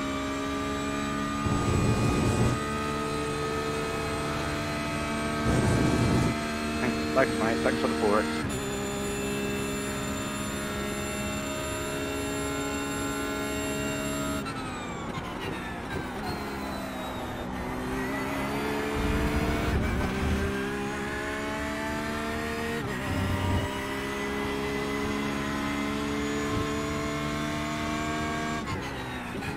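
A racing car engine roars loudly, rising in pitch as it speeds up and dropping as it slows for corners.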